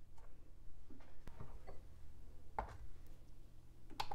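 A glass bowl is set down on a scale with a clack.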